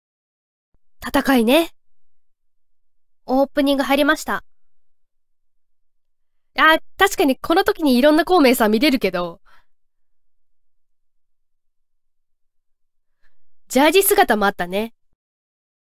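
A young woman speaks with animation through a microphone, in short bursts.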